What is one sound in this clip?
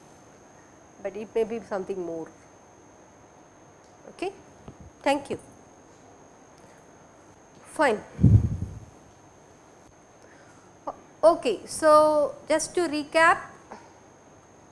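A woman speaks calmly into a microphone, pausing between phrases.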